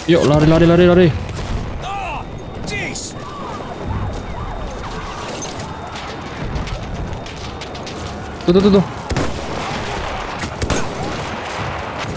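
Distant explosions rumble and boom.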